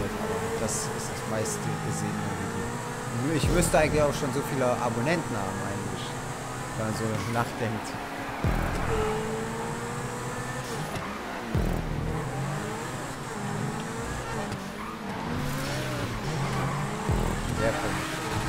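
A sports car engine roars at high revs, dropping in pitch with each gear change.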